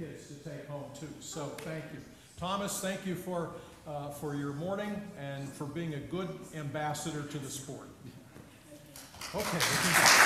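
An elderly man speaks calmly to children in a large echoing hall.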